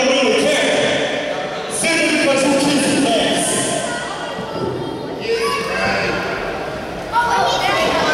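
A few people in a small crowd call out and cheer.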